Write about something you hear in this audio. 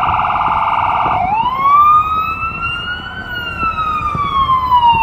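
An ambulance siren yelps rapidly, then switches to a slow rising and falling wail close by.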